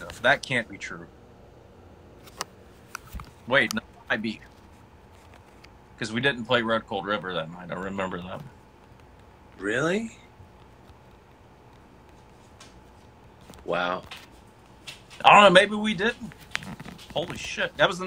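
A man speaks casually over an online call.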